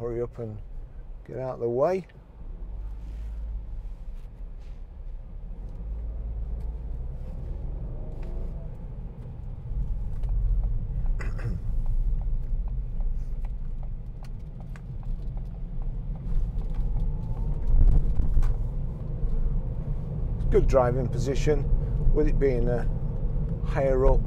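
A middle-aged man speaks calmly, close by inside a car.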